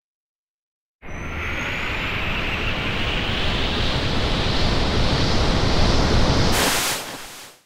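A swirling magical rush builds steadily louder.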